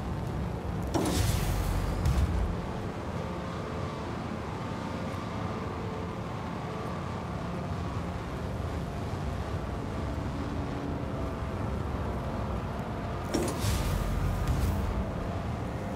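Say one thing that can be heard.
A heavy sliding door opens with a sharp hiss and a low rumble.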